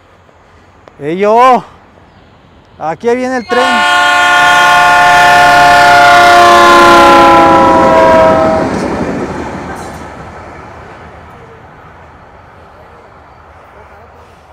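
A train rumbles past outdoors.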